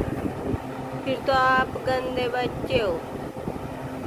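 A young boy speaks close by in a high, whiny voice.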